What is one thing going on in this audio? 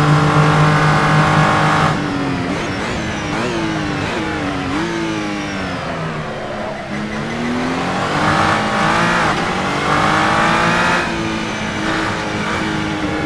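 A racing car engine roars at high revs, dropping in pitch as the car brakes and shifts down, then rising again as it speeds up.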